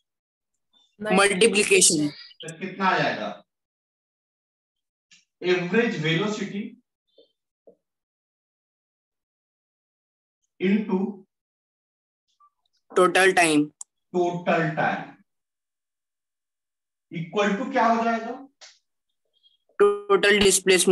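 A man speaks calmly and clearly nearby, in short phrases with pauses.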